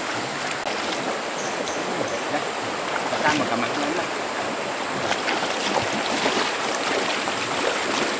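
A river flows and rushes steadily outdoors.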